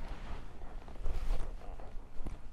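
A man's boots land with a soft thud on dirt.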